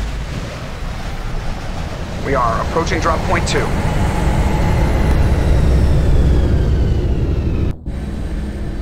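A spacecraft engine rumbles deeply as it flies overhead.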